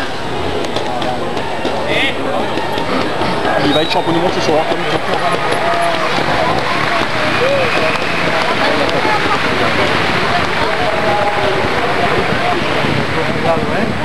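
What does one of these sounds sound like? A crowd of spectators chatters loudly all around outdoors.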